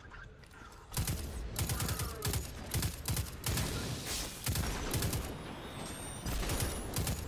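Rapid gunfire bursts loudly in a game.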